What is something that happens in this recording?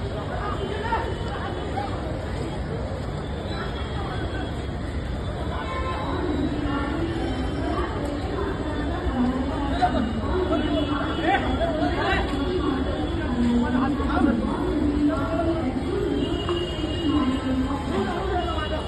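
A crowd of men and women talk and shout excitedly nearby, outdoors.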